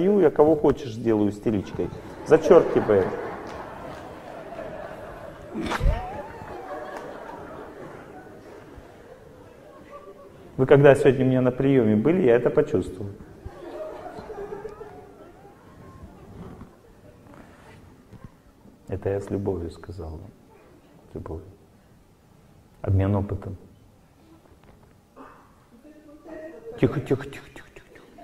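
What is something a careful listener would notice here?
A middle-aged man speaks with animation into a microphone in a large echoing hall.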